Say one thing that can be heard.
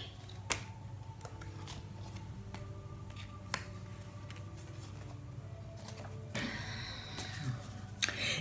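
Playing cards are shuffled and laid down with soft slaps and rustles.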